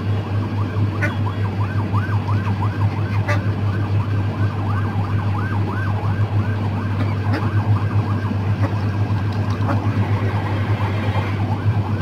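Hens cluck and call over and over.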